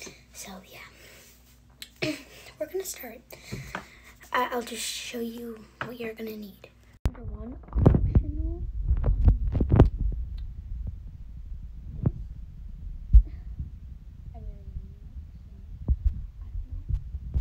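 A young girl talks casually, close by.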